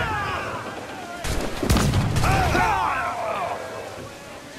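Cannons fire loudly in heavy booms.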